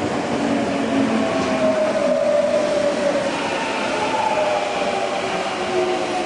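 Train brakes squeal with a high whine.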